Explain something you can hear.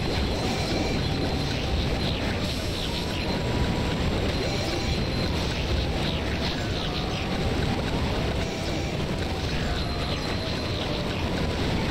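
Cartoonish hits and zaps of a video game fight ring out.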